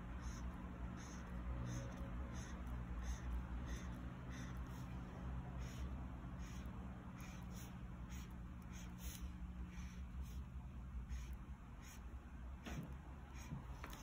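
A felt-tip marker squeaks and scratches softly on paper.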